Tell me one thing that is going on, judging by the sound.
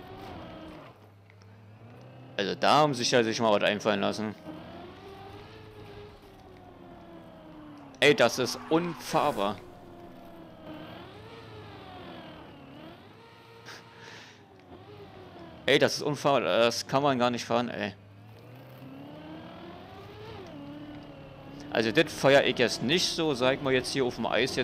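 A racing car engine whines and revs up and down.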